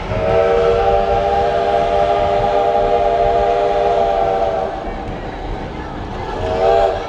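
A steam locomotive's whistle blows long and loud, then sounds again.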